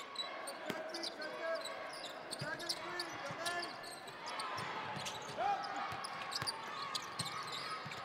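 A basketball bounces on a hardwood court.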